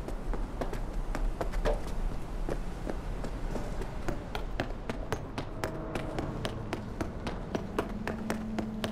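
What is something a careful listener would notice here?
Footsteps tap quickly on a hard floor and stairs.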